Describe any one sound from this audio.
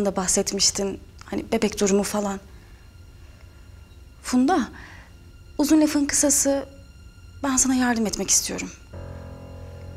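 A young woman talks on a phone, close by.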